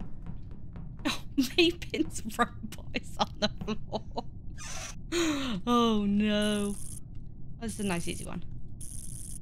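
A woman talks with animation, close to a microphone.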